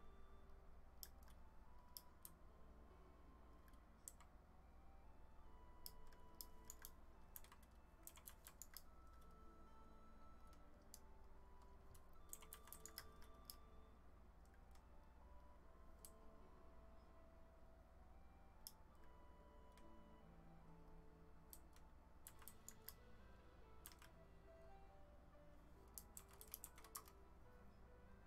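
Stone blocks are set down with short, sharp clicks, in quick bursts.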